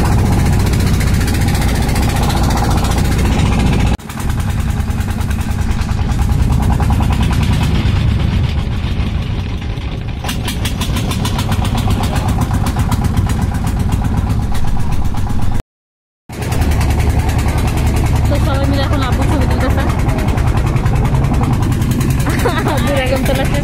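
A boat engine chugs steadily with a rapid beat.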